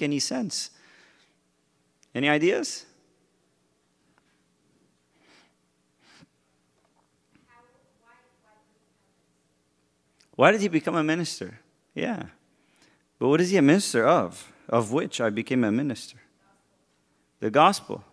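A man speaks into a microphone in a calm, friendly way, with pauses.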